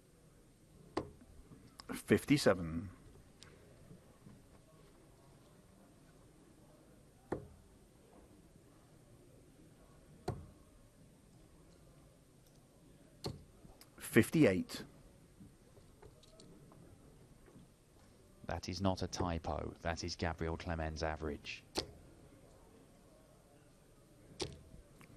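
Darts thud into a dartboard one at a time.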